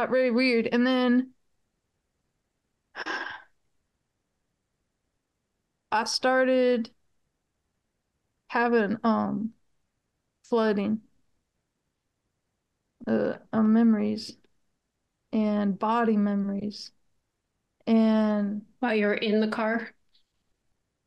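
A middle-aged woman speaks calmly in short phrases over an online call, with pauses between them.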